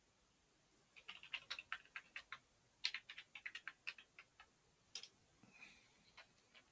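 Keys clack quickly on a keyboard.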